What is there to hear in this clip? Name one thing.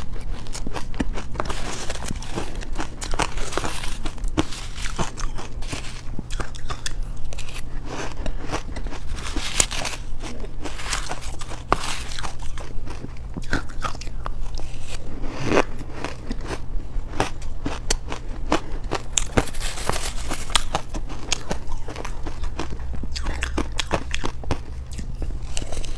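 A young woman crunches shaved ice loudly into a close microphone.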